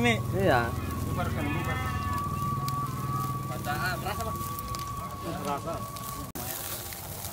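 Young men talk casually nearby.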